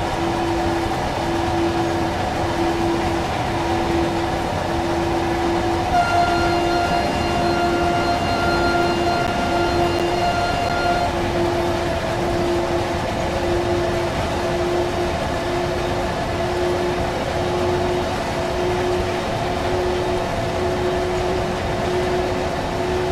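A locomotive engine hums with a steady drone.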